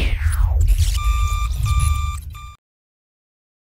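An electronic tone beeps in short repeated bursts.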